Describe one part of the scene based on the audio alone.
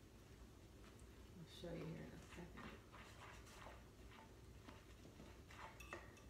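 A spoon stirs and scrapes in a pot.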